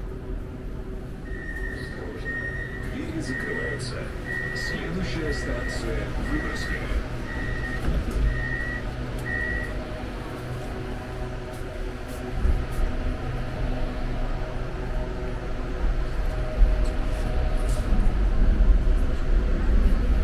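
A subway train rumbles and hums steadily along the tracks.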